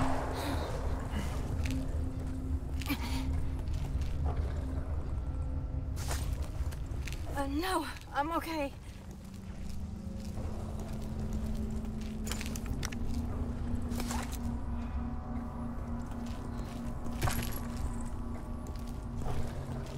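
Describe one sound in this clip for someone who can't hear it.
Footsteps tap on stone cobbles.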